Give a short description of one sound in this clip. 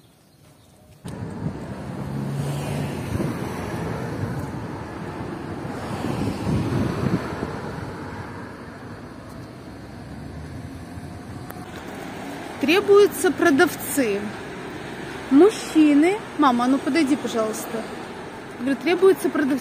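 Traffic hums steadily along a nearby street.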